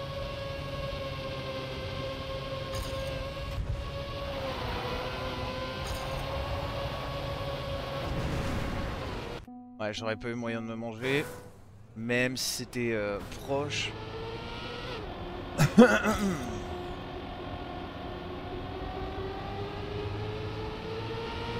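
A racing car engine hums steadily and changes pitch as the car speeds along.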